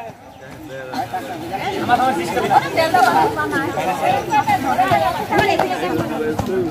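A group of women talk and laugh outdoors.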